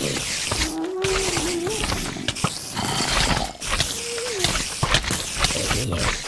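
Game spiders hiss and chitter.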